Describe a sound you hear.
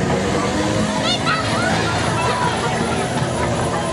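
Children squeal on a spinning ride.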